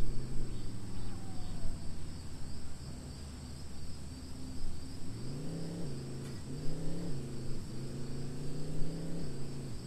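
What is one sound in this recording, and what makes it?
A bus engine hums steadily, then revs higher and rises and falls in pitch.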